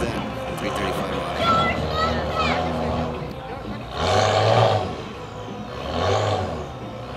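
A car engine idles with a deep rumble.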